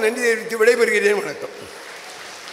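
An elderly man speaks emphatically into a microphone over a loudspeaker, with a slight echo.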